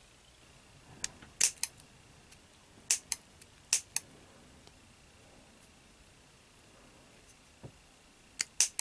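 Scissors snip with sharp little clicks.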